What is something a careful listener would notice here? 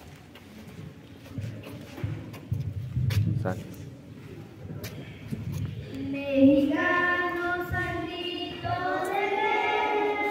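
A crowd chatters in a large open hall.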